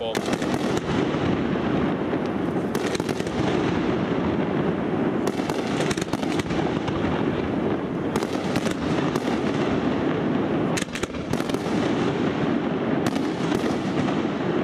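Aerial firework shells bang.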